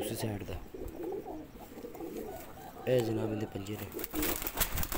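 A pigeon coos softly close by.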